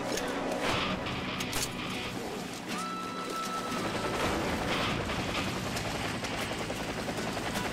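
Water splashes as feet wade through a river.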